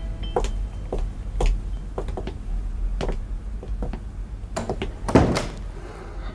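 High heels click on a hard floor.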